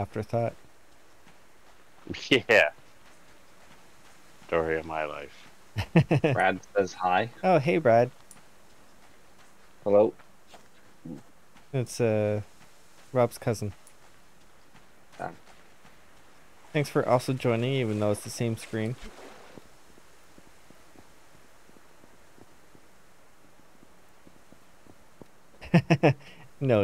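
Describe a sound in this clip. A man talks with animation into a close microphone, in bursts.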